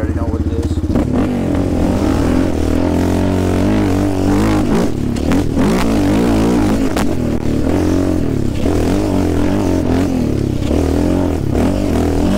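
A quad bike engine revs and growls while riding on a dirt track.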